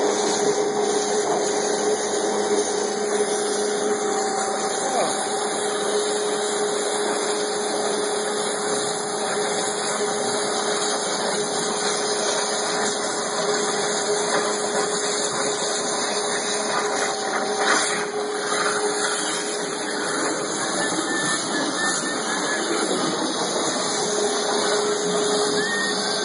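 A cutting machine hisses and roars steadily.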